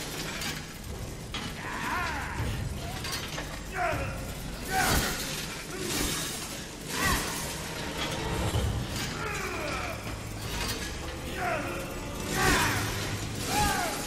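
A chainsaw engine idles with a low, rattling rumble.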